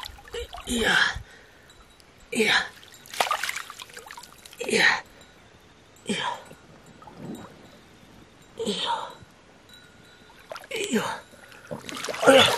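Hands splash and scoop in shallow water.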